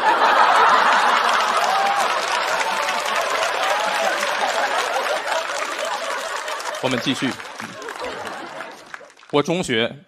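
A large audience laughs and cheers loudly in a big hall, then fades.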